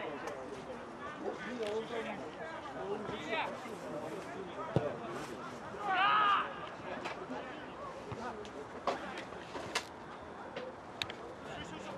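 Players call out to each other across an open field.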